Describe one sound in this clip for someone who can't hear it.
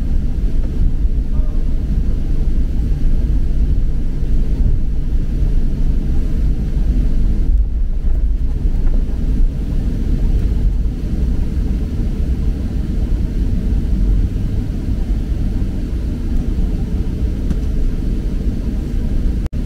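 A jet engine roars steadily from inside an aircraft cabin.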